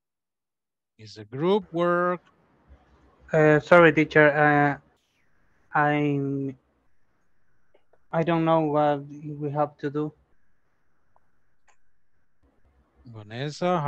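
A middle-aged man speaks calmly through a headset microphone over an online call, with pauses.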